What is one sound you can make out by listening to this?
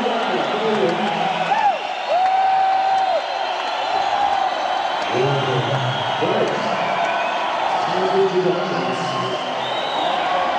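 An electric guitar plays long, bending lead notes.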